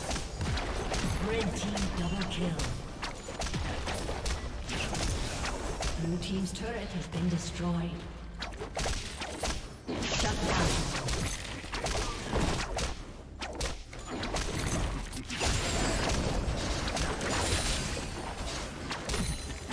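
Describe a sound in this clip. Magic blasts and whooshes crackle rapidly in a fast-paced video game fight.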